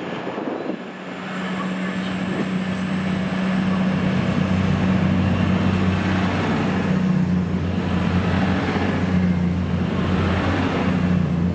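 A diesel train engine rumbles close by and grows louder.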